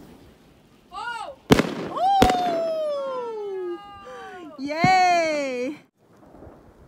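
Fireworks whistle upward and burst with sharp bangs.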